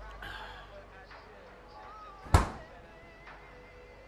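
A refrigerator door shuts.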